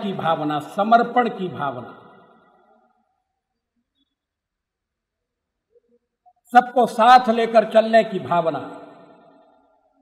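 An elderly man speaks forcefully into microphones, with a long pause.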